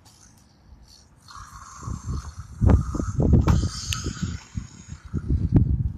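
A clear plastic blister pack crinkles and crackles as it is handled.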